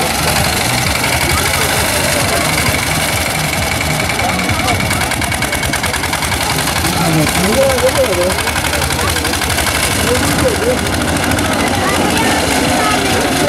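A small tractor engine chugs and putters steadily nearby.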